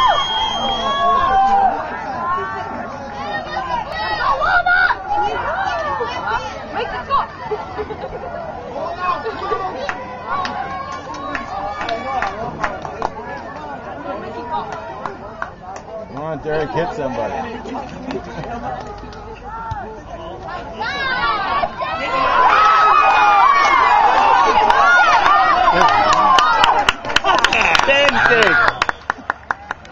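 Teenage boys on a sideline shout and chatter outdoors.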